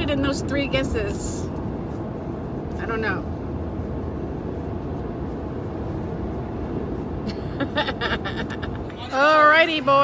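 A car engine hums steadily with road noise.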